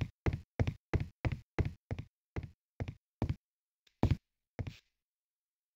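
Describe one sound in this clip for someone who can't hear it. Footsteps thud at a quick, steady pace.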